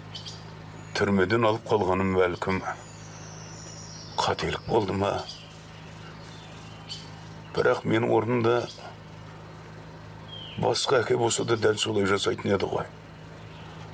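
An elderly man speaks slowly and quietly, close by.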